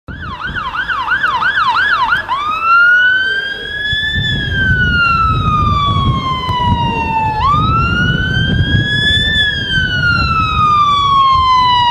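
A fire engine siren yelps rapidly, then switches to a slow rising and falling wail.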